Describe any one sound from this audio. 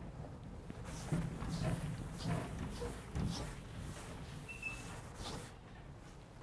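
A felt eraser wipes across a chalkboard.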